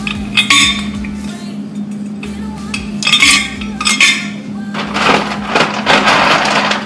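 Items rustle and clink inside a refrigerator door.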